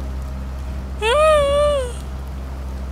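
A young woman makes a drawn-out exclamation close to a microphone.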